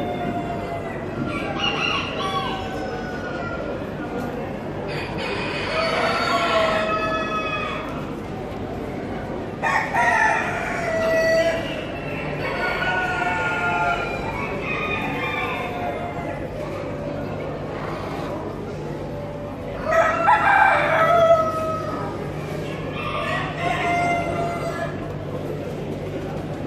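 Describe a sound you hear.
Pigeons coo and call nearby in a large echoing hall.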